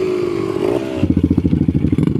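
A dirt bike engine putters in rapid pulses as the bike rides off over grass.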